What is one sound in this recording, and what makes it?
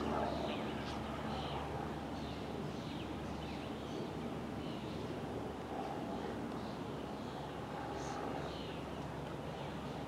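Men talk faintly in the distance outdoors.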